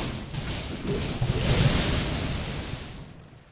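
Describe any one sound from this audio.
A spell bursts with a loud whoosh.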